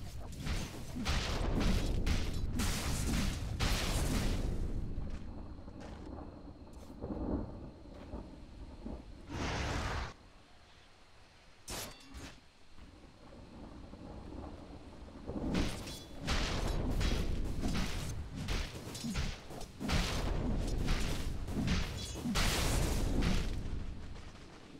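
Magic blasts and hits crackle in a fast battle.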